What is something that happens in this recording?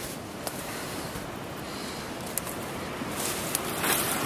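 Leafy branches rustle and brush past close by.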